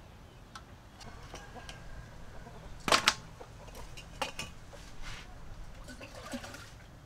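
Metal bowls clink and clatter against each other.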